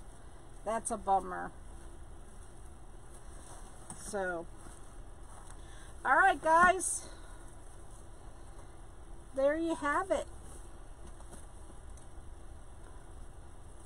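Tinsel rustles as a wreath is handled.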